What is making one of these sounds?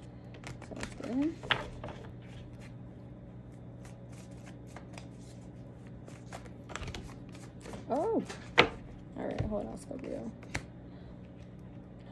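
Playing cards riffle and slap softly on a table.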